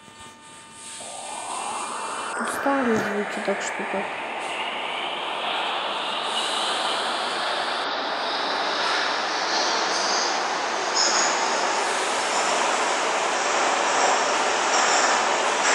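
A subway train's electric motors whine, rising in pitch as the train speeds up.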